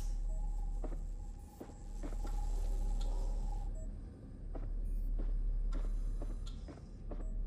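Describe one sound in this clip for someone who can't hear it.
Footsteps thud slowly on a wooden floor indoors.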